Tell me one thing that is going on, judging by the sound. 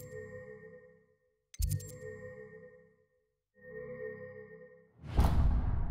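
Soft chiming menu music plays in short bursts.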